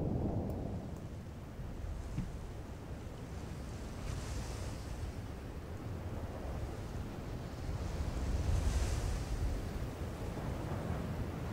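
Wind rushes steadily past, rising and falling.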